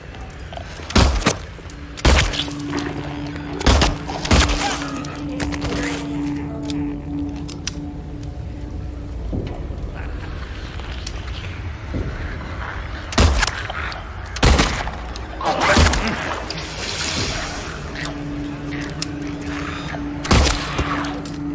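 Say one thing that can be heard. Gunshots ring out sharply, a few at a time.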